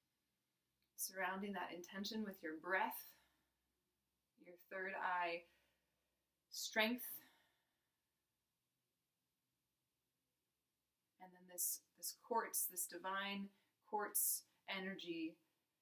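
A young woman speaks calmly and slowly, close by, with long pauses.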